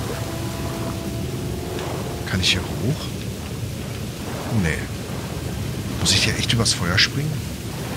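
Water splashes as a man wades and swims.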